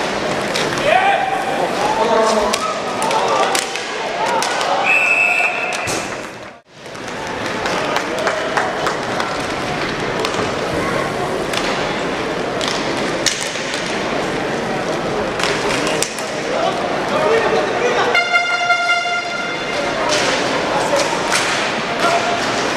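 Ice skates scrape across the ice.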